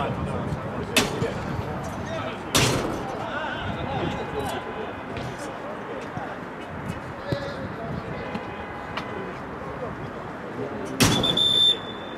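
A ball is kicked hard with a dull thud.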